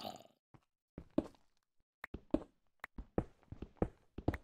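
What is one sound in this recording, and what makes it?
A pickaxe chips at stone with quick, repeated knocks.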